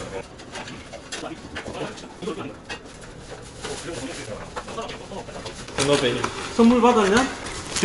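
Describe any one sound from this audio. Plastic bottles clatter as they are unpacked.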